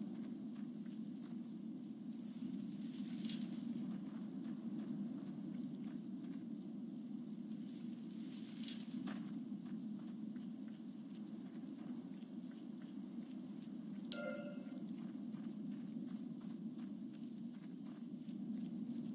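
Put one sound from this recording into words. A game character's footsteps patter on grass.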